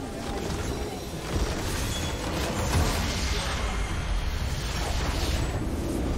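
A large structure explodes with a deep rumble.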